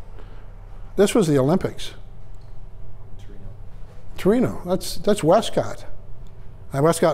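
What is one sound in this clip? A middle-aged man speaks with animation, heard from across a room with a slight echo.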